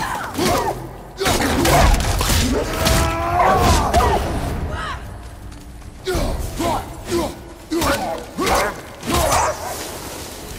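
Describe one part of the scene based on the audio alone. A large beast snarls and growls.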